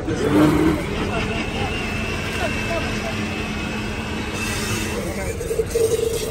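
A blender motor whirs steadily.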